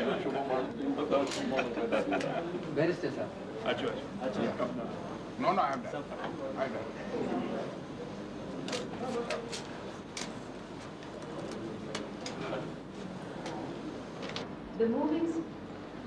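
Several men talk and murmur close by.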